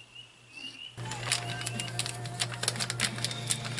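A seasoning shaker rattles.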